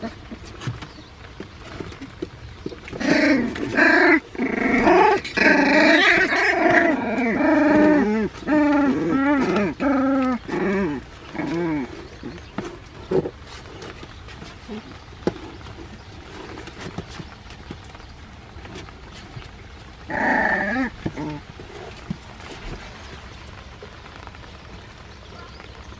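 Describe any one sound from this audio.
Puppies' paws scratch on the floor.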